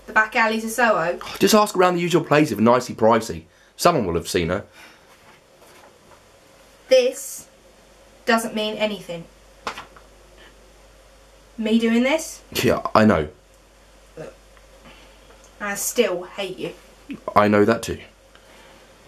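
A young woman speaks expressively close to a microphone, in short bursts with pauses.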